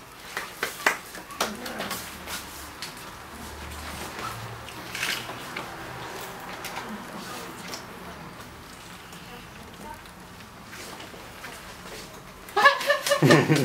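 A man speaks with animation to a small group nearby.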